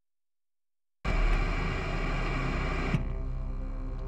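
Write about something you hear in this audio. Loud television static hisses and crackles.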